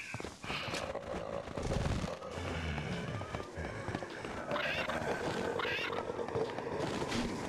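Zombies groan and moan nearby.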